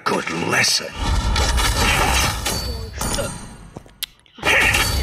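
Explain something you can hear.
Game sound effects clash and burst during a fight.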